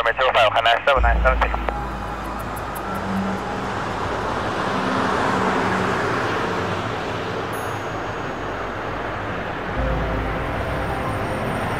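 A car passes close by.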